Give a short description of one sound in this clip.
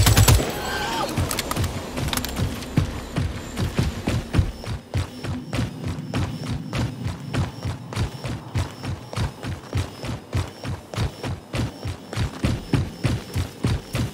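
Footsteps crunch quickly and steadily over snow.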